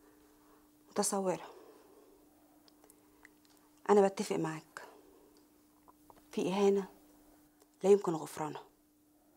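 A woman speaks calmly and close by, in short phrases.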